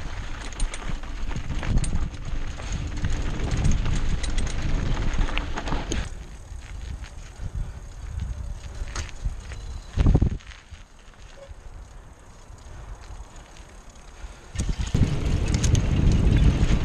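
A mountain bike rattles over bumps.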